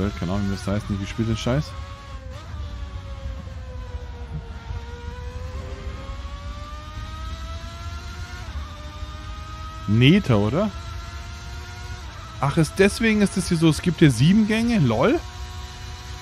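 A racing car engine whines steadily, its pitch dipping and rising with the gear changes.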